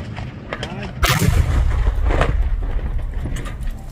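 A loud explosion booms and blasts nearby.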